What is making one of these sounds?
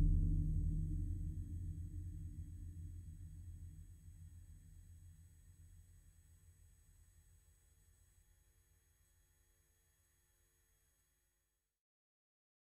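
A deep synthesizer drone hums and slowly fades away to silence.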